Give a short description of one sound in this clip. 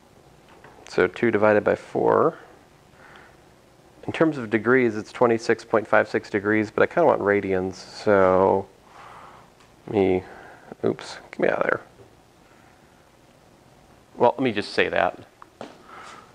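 A man speaks calmly, pausing often.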